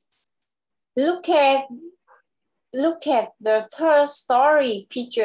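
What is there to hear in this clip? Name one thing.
A young girl speaks clearly over an online call.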